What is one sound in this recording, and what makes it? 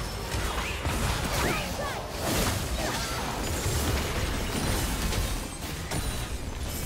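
Blows and impacts clash quickly in a game battle.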